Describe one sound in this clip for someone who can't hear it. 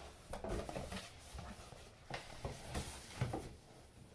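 A cardboard box lid swings shut with a soft thump.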